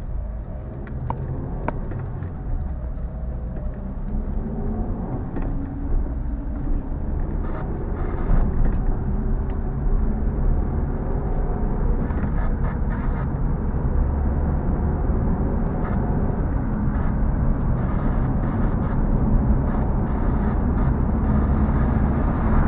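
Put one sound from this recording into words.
Tyres roll and hiss on a damp road.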